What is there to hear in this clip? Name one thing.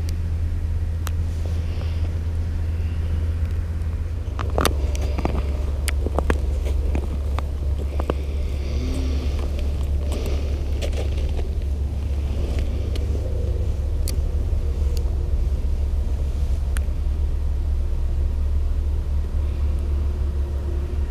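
Wind rumbles steadily across an open, outdoor space.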